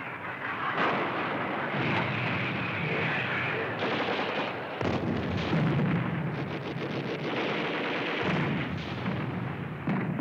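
A large gun fires with a loud boom.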